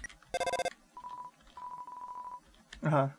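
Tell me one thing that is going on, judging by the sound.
A phone rings with short electronic beeps.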